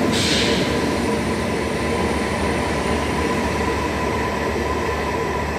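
A high-speed train roars steadily as it approaches along the tracks.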